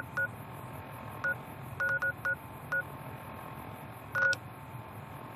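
Short electronic beeps chirp in quick bursts.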